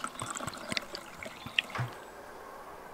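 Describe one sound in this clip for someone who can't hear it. Wine pours and splashes into a glass.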